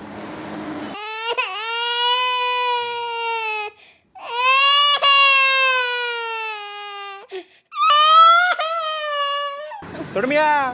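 A boy sobs and wails loudly.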